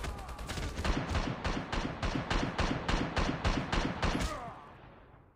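A rifle fires rapid gunshots that echo and fade.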